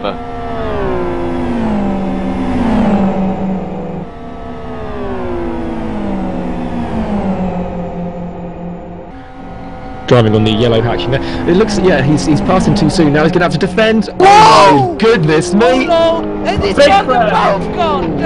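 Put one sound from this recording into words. Racing car engines roar and drop in pitch as they slow for corners.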